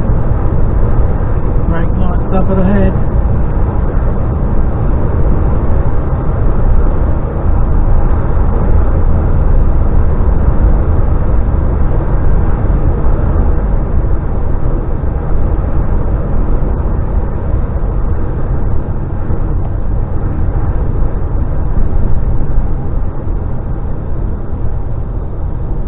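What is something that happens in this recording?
A vehicle engine drones steadily.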